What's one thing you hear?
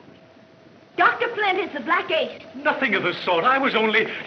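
A man talks to a woman, heard through an old film soundtrack.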